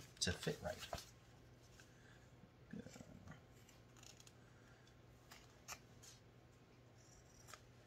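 Fabric rustles as it is smoothed flat.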